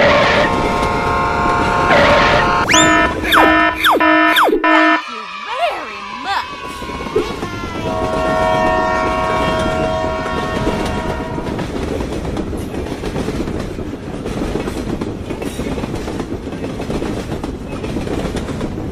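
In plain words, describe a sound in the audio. A train rumbles along a track.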